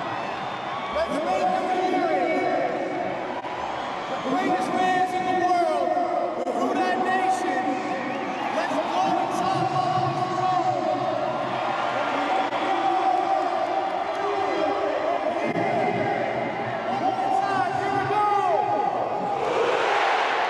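A man leads a chant through a microphone and loudspeakers in a huge echoing stadium.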